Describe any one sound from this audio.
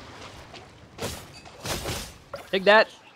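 A sword whooshes through the air.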